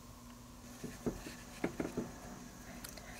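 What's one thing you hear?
A small plastic toy taps on a hard surface.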